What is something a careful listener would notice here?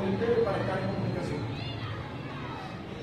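A man speaks nearby to a group.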